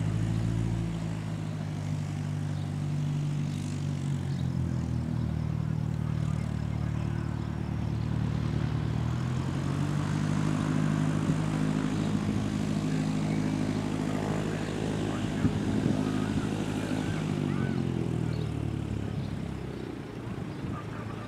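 A biplane's propeller engine drones overhead, growing louder as it approaches.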